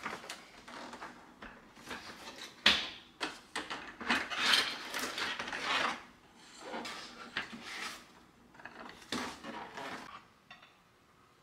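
Cardboard rustles and scrapes as a box is opened and handled.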